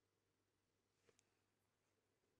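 A brush clinks against a small jar.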